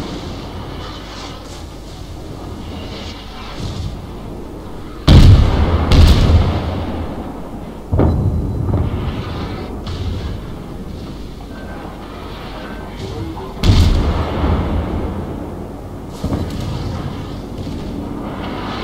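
Sea water washes steadily around a ship.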